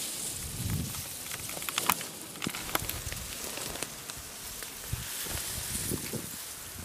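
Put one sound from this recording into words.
Leaves and grass rustle and snap as a person pushes through dense undergrowth.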